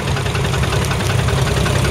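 A tractor engine chugs steadily close by.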